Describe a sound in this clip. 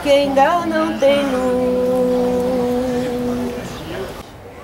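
A group of women sing slowly together outdoors.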